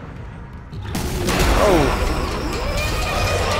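Glass shatters with a loud crash.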